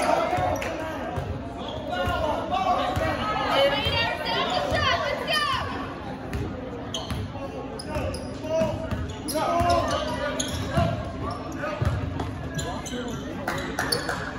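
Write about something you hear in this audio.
Young players and spectators shout and call out in a large echoing hall.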